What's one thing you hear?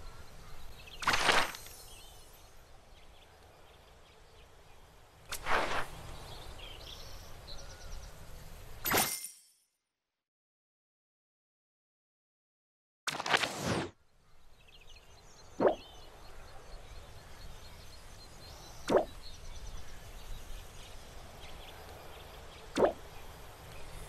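Soft whooshing interface sounds play now and then.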